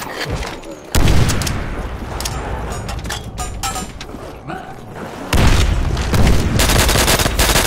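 Explosions boom loudly.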